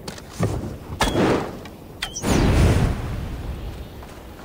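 Glowing embers roar and crackle in low bursts.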